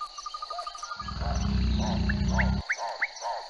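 A crocodile growls deeply.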